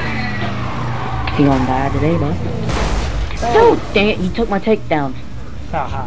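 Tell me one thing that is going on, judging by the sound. A car crashes into another car with a loud metal smash.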